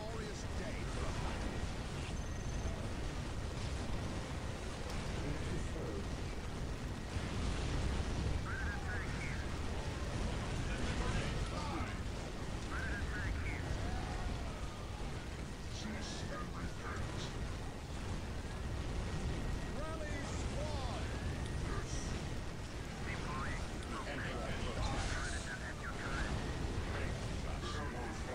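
Guns fire rapidly in a battle.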